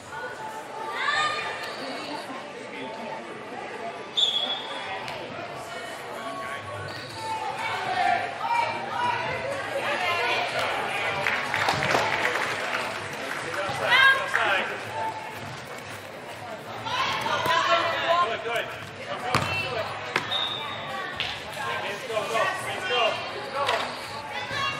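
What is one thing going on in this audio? Young women shout and call out to each other in a large echoing hall.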